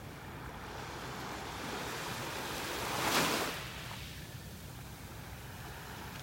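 Small waves lap and wash gently onto a shore.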